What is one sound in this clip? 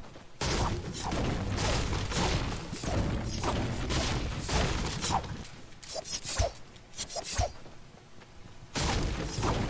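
A pickaxe chops repeatedly against a tree trunk.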